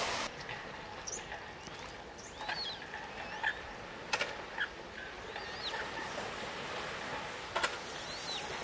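Ducklings peep softly on the water.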